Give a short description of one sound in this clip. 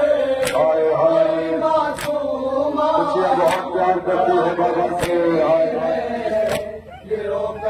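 Men beat their chests in a slow, steady rhythm.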